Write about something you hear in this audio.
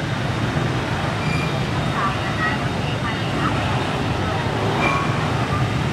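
Motorbike engines hum as they ride slowly past.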